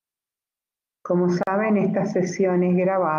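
An elderly woman speaks calmly and close to a microphone.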